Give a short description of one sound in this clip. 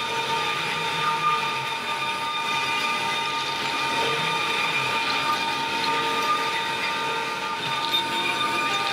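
A band saw whines steadily as it cuts through material.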